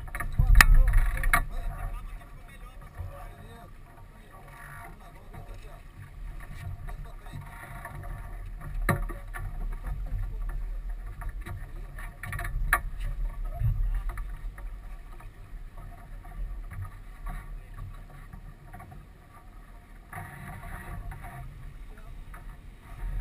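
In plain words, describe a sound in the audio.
Wind rumbles across the boat outdoors.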